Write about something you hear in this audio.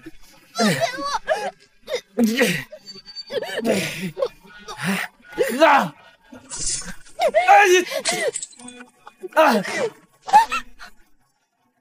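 A young woman chokes and cries out in distress close by.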